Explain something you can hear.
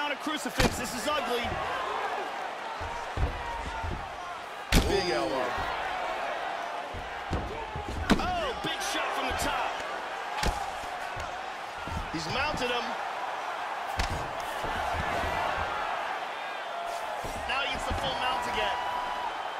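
Punches thud repeatedly against a body.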